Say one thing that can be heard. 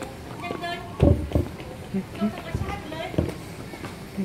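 A metal pole clanks as children grab it.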